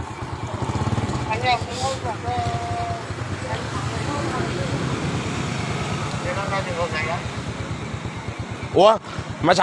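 A middle-aged man answers calmly nearby.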